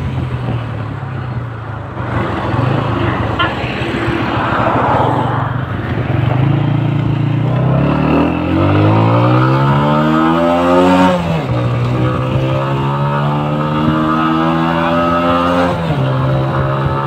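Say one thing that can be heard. A motorcycle engine runs steadily and revs up through the gears.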